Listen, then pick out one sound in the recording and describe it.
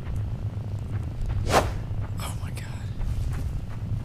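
A giant spider's leg stabs into the ground with a sharp thud.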